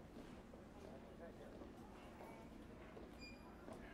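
A man's footsteps walk along a hard floor.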